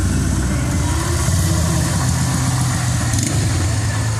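A motorbike engine putters close by.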